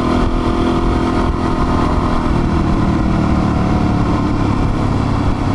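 Wind buffets the microphone of a moving motorcycle.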